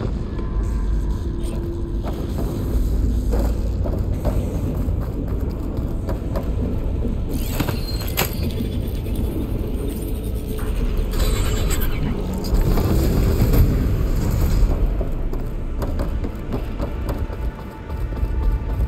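A deep mechanical hum drones steadily.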